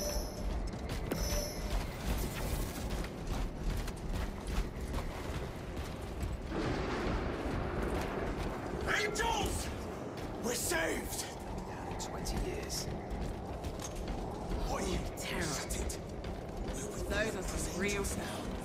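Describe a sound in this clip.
Heavy armoured footsteps thud on the ground.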